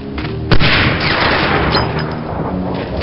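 A rifle shot cracks loudly and rolls away in echo.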